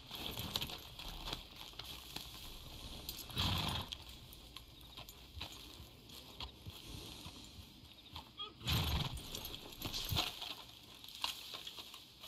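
Horse hooves thud on soft ground at a walk.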